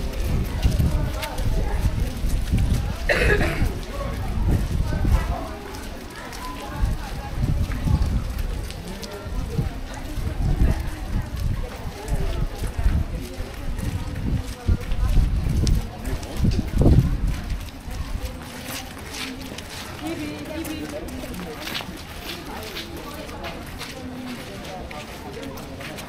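Footsteps tap on a wet pavement.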